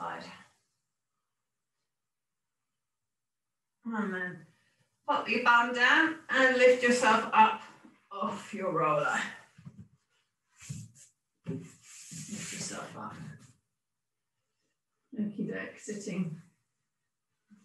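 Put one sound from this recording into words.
A woman speaks calmly and clearly, close by, as if instructing.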